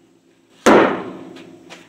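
A heavy wooden block knocks hard against a metal frame.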